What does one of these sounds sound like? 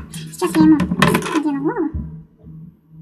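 A woman speaks calmly into a nearby microphone.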